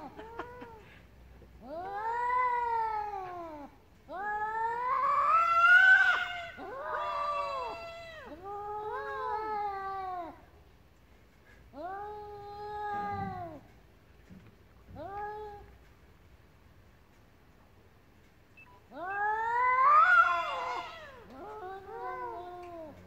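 Cats yowl and wail loudly, in long drawn-out cries that come again and again.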